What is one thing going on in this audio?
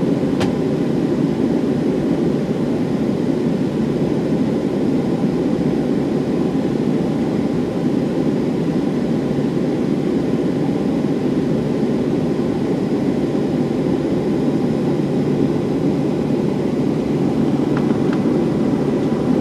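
Jet engines roar steadily as an airliner taxis.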